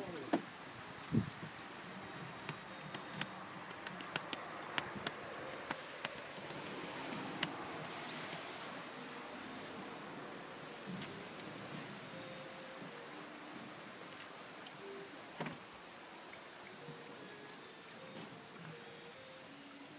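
Water laps and trickles softly against a small boat gliding along a still waterway.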